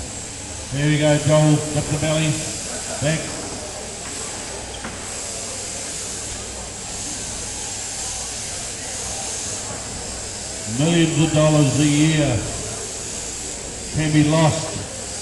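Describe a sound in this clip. Electric sheep shears buzz steadily.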